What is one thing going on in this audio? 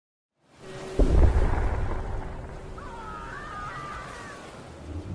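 Wood smashes and splinters with a loud crash.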